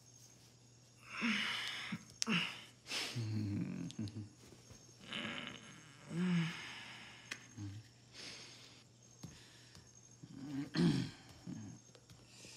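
A woman answers softly.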